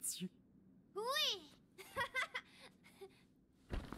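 A young girl speaks excitedly.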